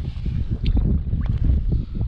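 A fish splashes briefly in shallow water.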